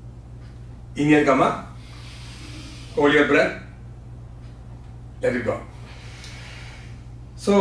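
A man speaks calmly in short phrases into a close microphone, in a slightly echoing room.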